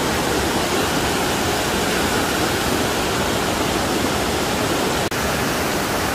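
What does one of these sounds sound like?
Water roars steadily as it cascades over rocks.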